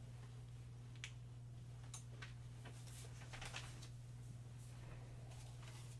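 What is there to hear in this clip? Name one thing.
Papers rustle and crinkle softly.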